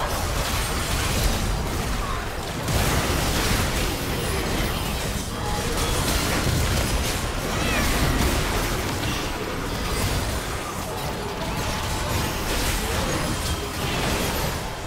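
Spell blasts, hits and magical whooshes of a video game battle crackle and burst rapidly.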